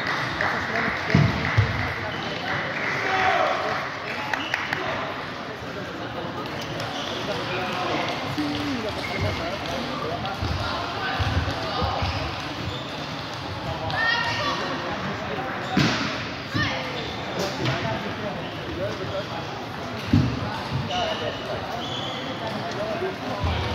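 Table tennis balls click and bounce on tables in a large echoing hall.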